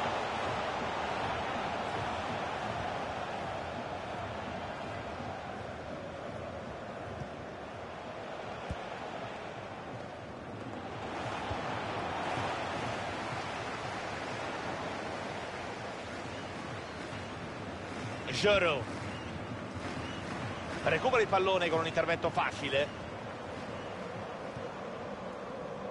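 A large stadium crowd murmurs and cheers steadily throughout.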